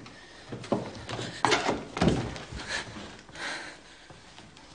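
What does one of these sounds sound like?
A woman gasps and moans in distress, close by.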